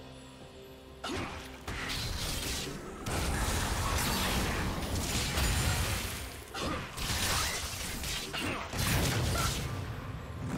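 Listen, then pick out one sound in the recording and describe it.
Magic blasts and clashing weapons crackle and boom in a busy video game battle.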